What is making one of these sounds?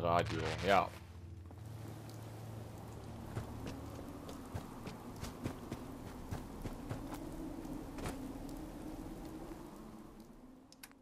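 Footsteps crunch over rough ground.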